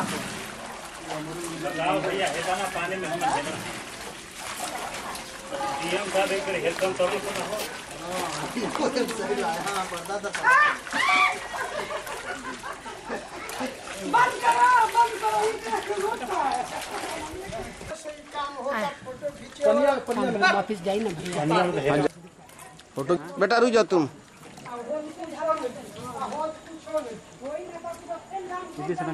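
Feet splash and slosh through shallow muddy water.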